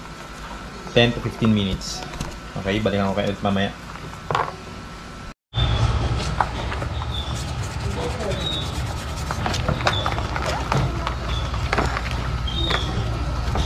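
A brush scrubs a shoe in water.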